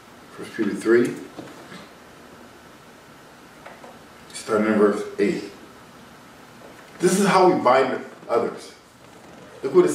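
A man speaks calmly and closely, in short phrases with pauses.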